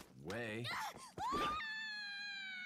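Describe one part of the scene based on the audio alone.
A young woman cries out in alarm.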